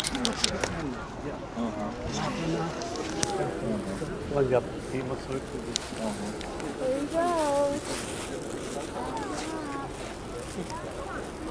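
Several adults chat nearby.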